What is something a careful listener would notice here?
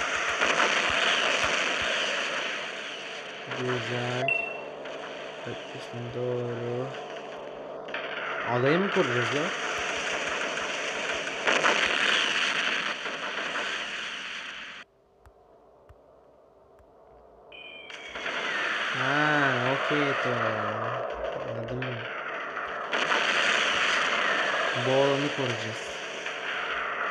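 Naval guns fire in loud, rapid bursts.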